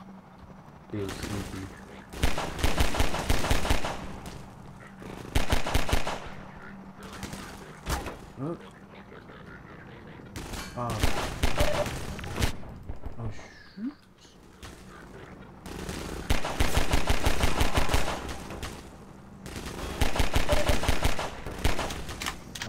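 Rapid pistol shots ring out in bursts.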